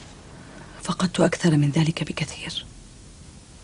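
A young woman speaks quietly and tensely.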